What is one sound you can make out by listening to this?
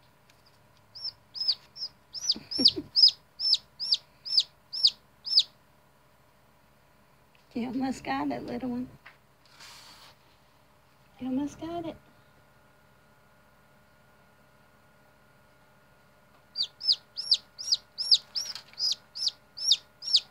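A hatching chick peeps loudly in quick, repeated high chirps.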